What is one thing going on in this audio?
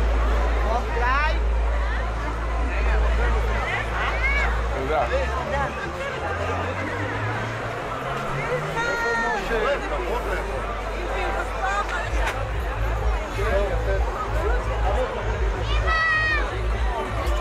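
Children squeal and call out excitedly.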